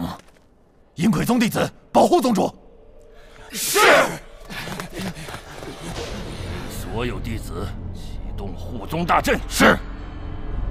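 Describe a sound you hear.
A middle-aged man speaks commandingly.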